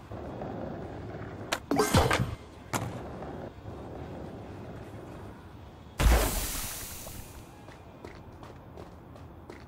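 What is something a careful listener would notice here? Skateboard wheels roll over pavement.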